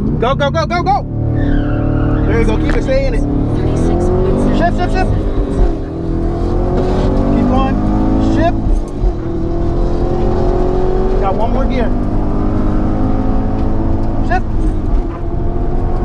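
A car engine dips briefly at each gear change, then climbs again.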